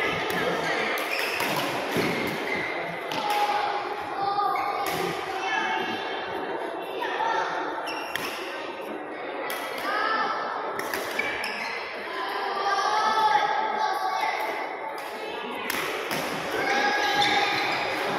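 Children call out and chatter in a large, echoing hall.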